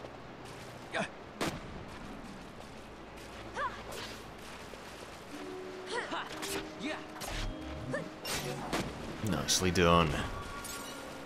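Blades strike and clang in a short fight.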